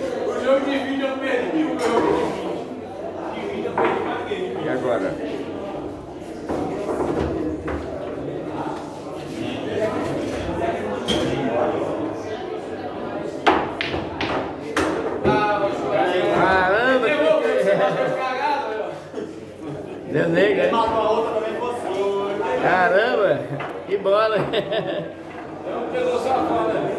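Several men talk and call out with animation nearby.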